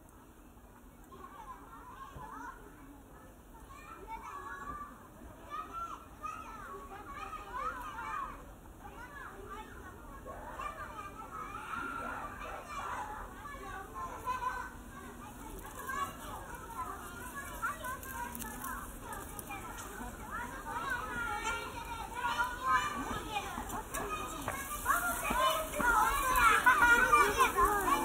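A group of young boys chatter and laugh close by.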